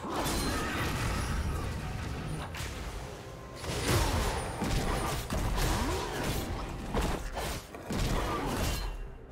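Blades clash and strike repeatedly in a fight.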